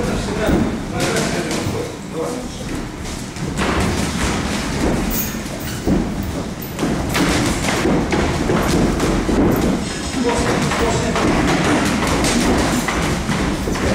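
Feet shuffle and squeak on a ring floor.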